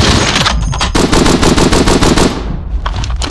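A machine gun fires a rapid burst of shots.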